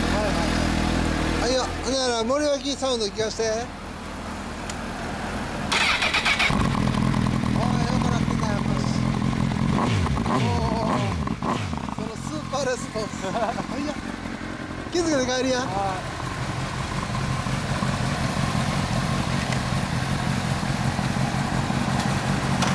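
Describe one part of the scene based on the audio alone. A motorcycle engine idles with a low steady rumble close by.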